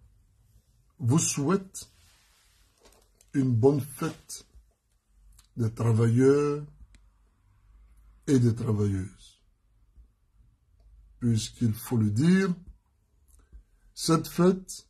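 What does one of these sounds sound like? A man speaks calmly and slowly in short phrases, close to the microphone.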